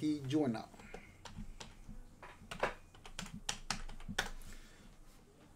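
Keys clatter as a man types on a keyboard.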